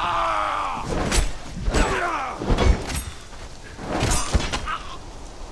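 Blades clash and strike flesh in heavy blows.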